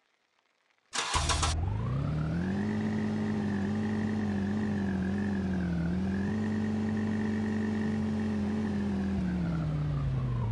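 A car engine starts up and runs with a steady drone.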